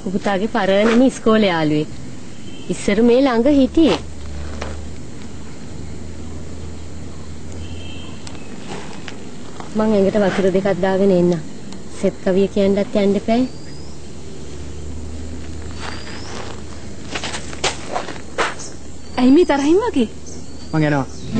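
A young woman talks calmly nearby.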